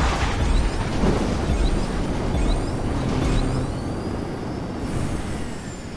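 A rocket booster roars loudly.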